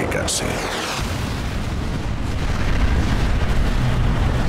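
A huge explosion booms and rumbles deeply.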